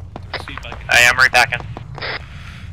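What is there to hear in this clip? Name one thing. A distant explosion booms and rumbles.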